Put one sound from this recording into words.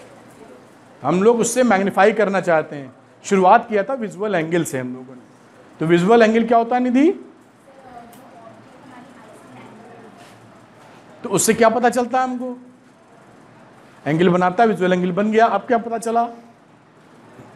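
A middle-aged man speaks calmly and clearly into a clip-on microphone, in bursts with pauses.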